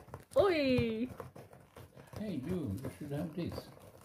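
A cat scratches at cardboard.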